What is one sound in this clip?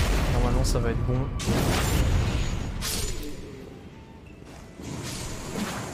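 Heavy sword blows strike with loud thuds.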